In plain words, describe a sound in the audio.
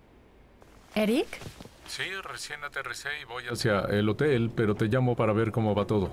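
A young woman talks animatedly on a phone, close by.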